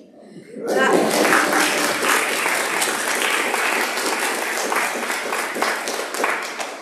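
A band plays lively music in a large echoing hall.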